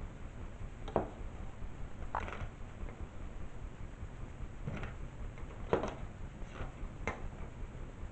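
A circuit board with plastic parts clicks and knocks as it is handled.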